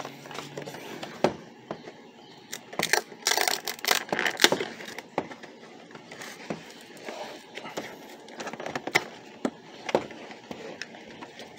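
A cardboard box knocks against a wooden table.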